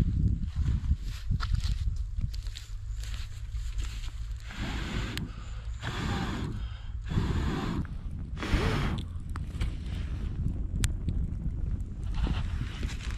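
Wind blows across open ground.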